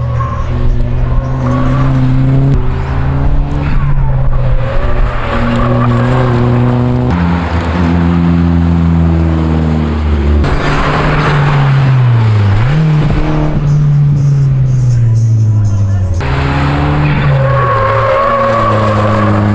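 Tyres squeal on asphalt through corners.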